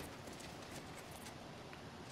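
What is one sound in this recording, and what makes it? Horses walk slowly over grass.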